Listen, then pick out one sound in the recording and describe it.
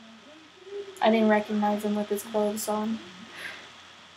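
A young woman speaks brightly with excitement.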